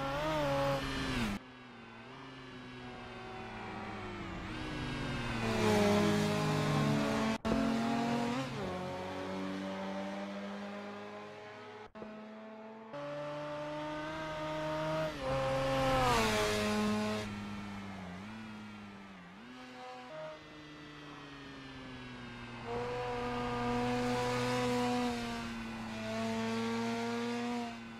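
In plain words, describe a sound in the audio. A sports car engine revs hard, its pitch climbing and dropping sharply with each gear change.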